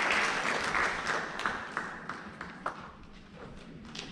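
A crowd applauds in a large echoing hall, and the clapping fades.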